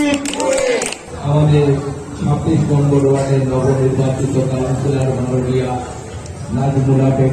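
A man speaks loudly into a microphone, heard through a loudspeaker.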